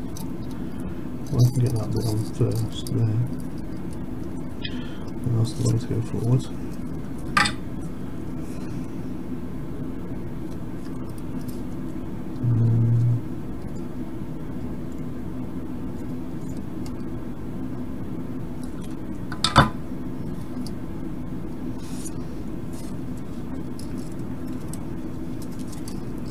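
Small plastic and metal parts click and tap as hands handle them.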